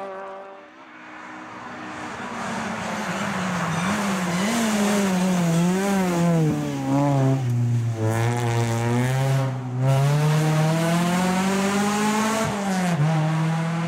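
A rally car engine roars closer, revving up and down through gear changes.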